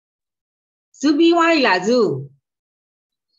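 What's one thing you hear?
An older woman speaks over an online call.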